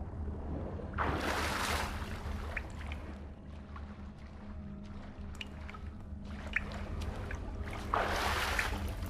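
Water swishes with swimming strokes.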